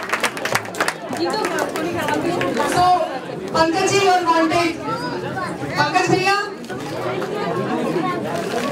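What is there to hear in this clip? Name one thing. A crowd of men and women sings together loudly in a large room.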